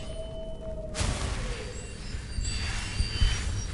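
A magic spell crackles and hums.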